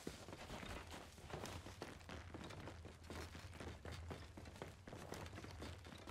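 Footsteps thud on a wooden ladder.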